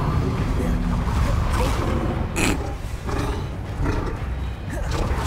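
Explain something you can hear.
A large beast growls and snarls.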